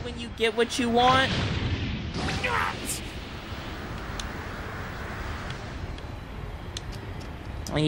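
An energy blast roars and crackles.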